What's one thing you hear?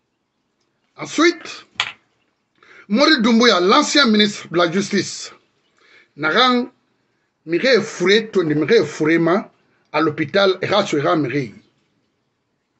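A middle-aged man speaks forcefully into a nearby microphone, in bursts.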